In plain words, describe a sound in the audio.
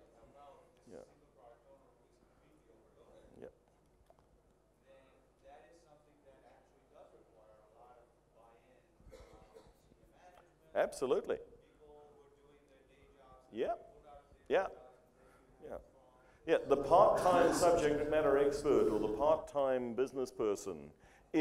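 A man speaks calmly into a microphone, heard through a loudspeaker in a hall.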